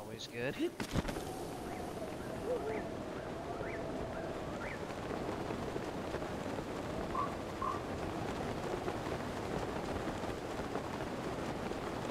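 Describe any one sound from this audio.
Wind rushes steadily past a glider.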